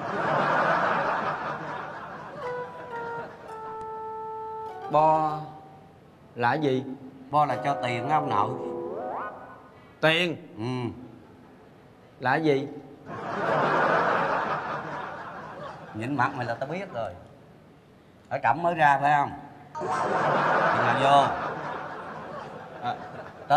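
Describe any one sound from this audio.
An audience laughs loudly in a large hall.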